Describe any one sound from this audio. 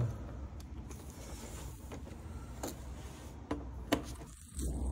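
A metal tool clinks against metal parts.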